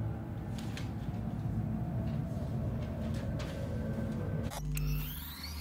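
A low ambient drone hums steadily, then drops away.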